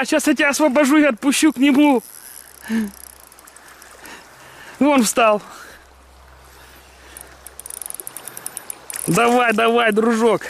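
A fish splashes and thrashes at the surface of a river.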